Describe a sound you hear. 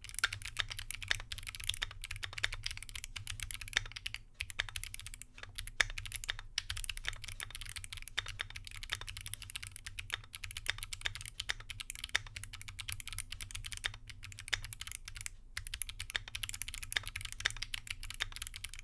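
Keys on a mechanical keyboard clack rapidly as someone types fast.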